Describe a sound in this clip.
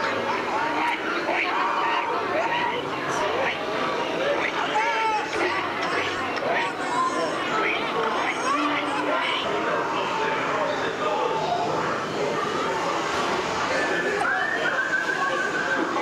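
Men's voices shout and talk with animation through loudspeakers in a large echoing space.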